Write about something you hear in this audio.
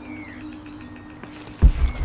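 Leafy vines rustle as someone pushes through them.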